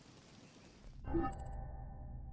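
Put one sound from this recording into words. A deep whoosh sounds as a menu opens.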